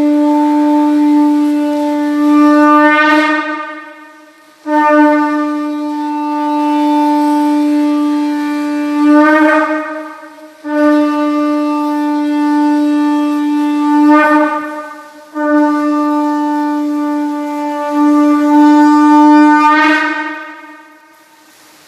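A conch shell is blown in long, loud, steady blasts, each swelling at the end before a short pause.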